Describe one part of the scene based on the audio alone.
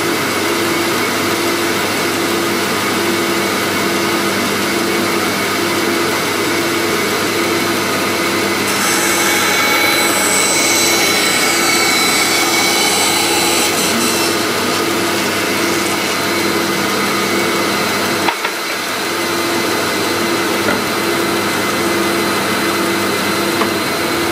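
A band saw runs with a steady hum.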